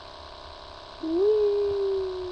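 A young child makes a drawn-out sound with the voice close to a microphone.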